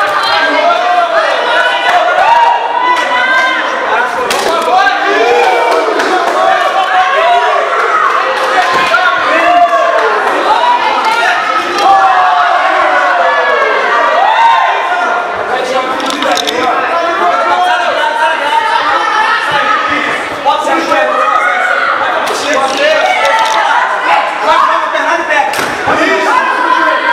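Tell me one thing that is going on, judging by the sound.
A crowd shouts and cheers loudly throughout.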